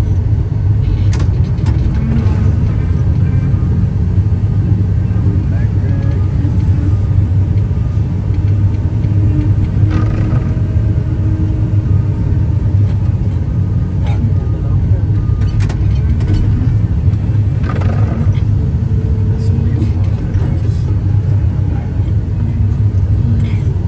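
A heavy diesel engine rumbles steadily from inside a loader cab.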